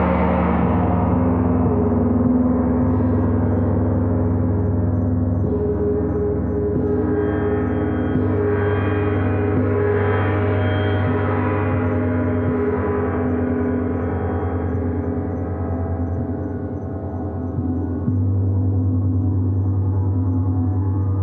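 Soft mallets rub and strike the gongs, renewing the low roar.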